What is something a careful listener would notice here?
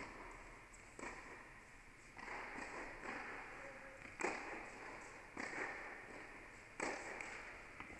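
Tennis balls are struck with rackets, ringing out through a large echoing hall.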